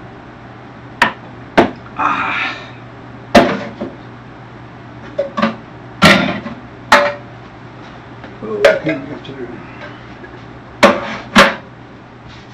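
Dishes and utensils clatter and knock on a counter.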